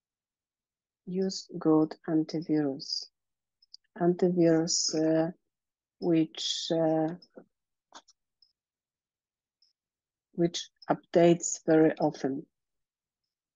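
A woman speaks calmly through an online call microphone.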